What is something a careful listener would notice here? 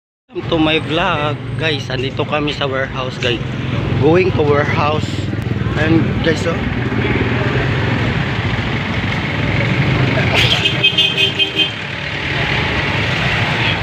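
Car engines idle and hum in slow street traffic.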